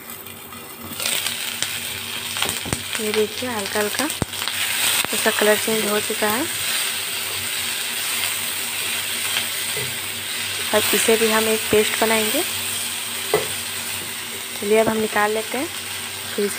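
Food sizzles in hot oil in a pan.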